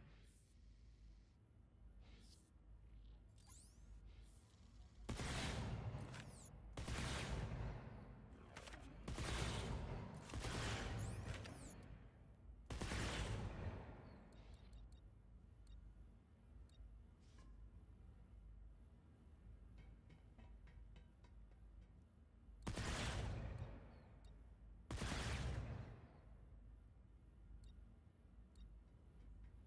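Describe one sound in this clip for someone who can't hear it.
Menu selections click softly.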